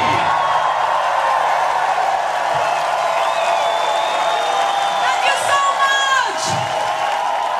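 An electric guitar plays loudly.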